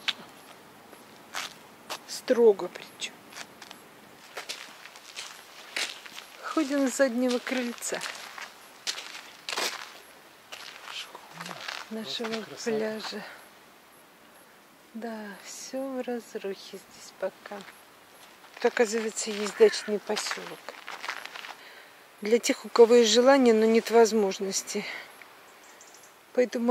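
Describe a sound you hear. Footsteps crunch on gravel and sand.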